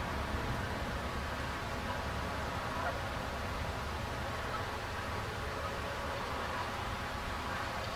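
Water laps and splashes gently.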